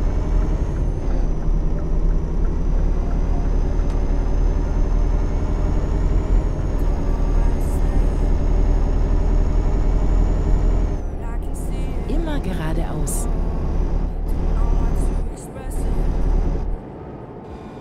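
A truck engine hums with a steady low drone.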